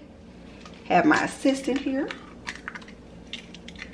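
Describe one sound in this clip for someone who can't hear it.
An egg cracks against the rim of a metal bowl.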